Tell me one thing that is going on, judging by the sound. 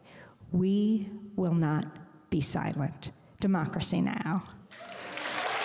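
A middle-aged woman speaks into a microphone.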